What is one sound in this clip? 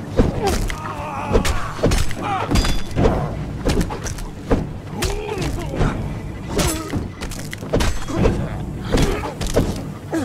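Heavy blows thud as a club strikes a body.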